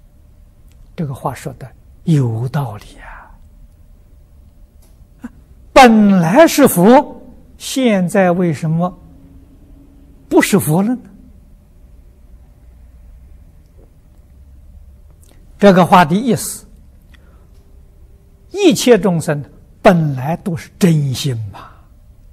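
An elderly man speaks calmly and slowly into a close microphone, with pauses between phrases.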